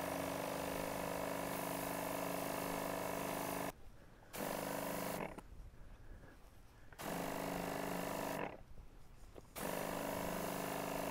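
A motorized backpack sprayer hums steadily, cutting out now and then.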